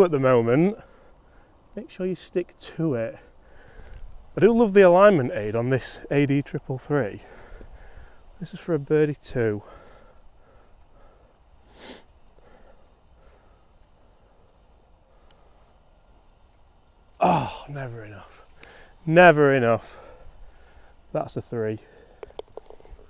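A man talks casually close by, outdoors.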